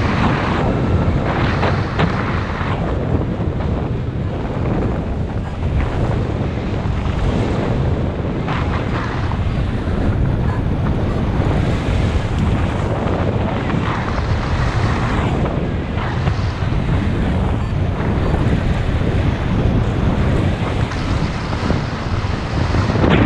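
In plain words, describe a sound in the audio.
Strong wind rushes and buffets loudly past, outdoors high in the air.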